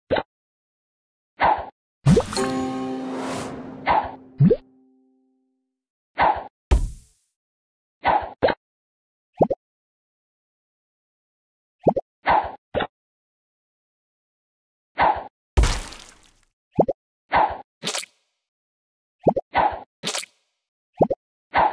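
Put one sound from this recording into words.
Game sound effects pop and chime as bubbles are shot and burst.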